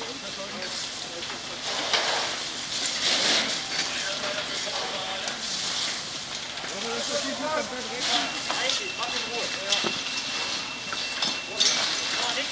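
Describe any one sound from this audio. A large fire roars and crackles.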